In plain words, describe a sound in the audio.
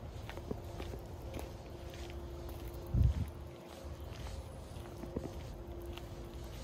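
A dog's paws patter softly on a dirt path.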